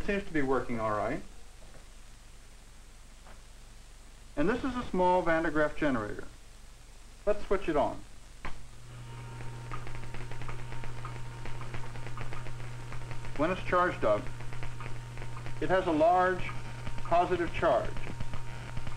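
A man speaks calmly, heard through an old, muffled recording.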